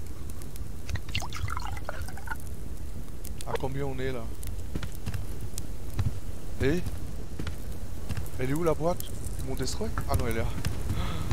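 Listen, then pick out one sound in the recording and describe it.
A fire crackles softly in a stove.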